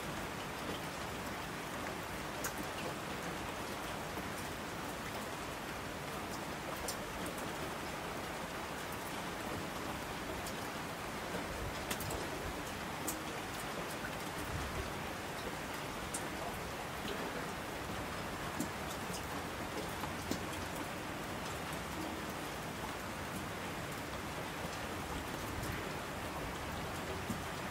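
A mountain stream rushes over rocks.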